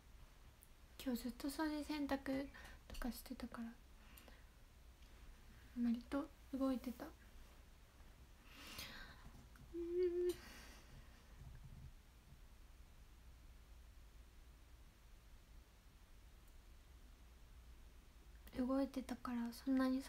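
A young woman speaks softly and casually, close by, in short bursts.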